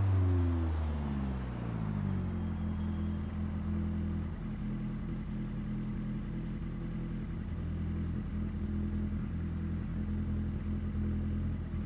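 A rally car engine idles with a low, steady rumble.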